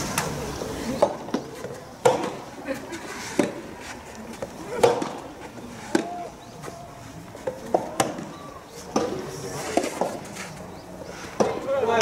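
A tennis ball is hit back and forth with rackets, each stroke a sharp pop outdoors.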